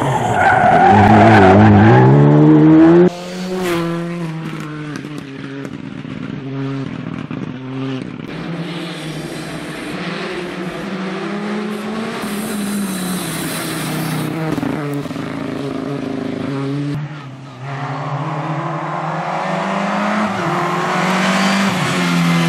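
A rally car's engine revs at full throttle.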